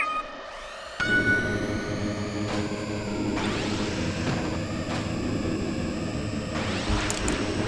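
Racing engines roar with a high whine as the race starts.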